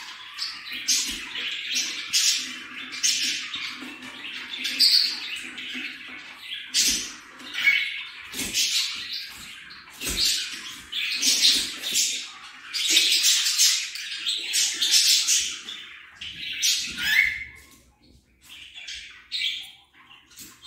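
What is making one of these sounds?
A budgerigar chirps and warbles close by.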